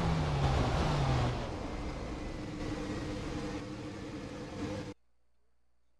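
Tyres skid and rumble across gravel.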